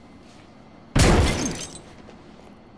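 A gunshot bangs loudly and echoes briefly.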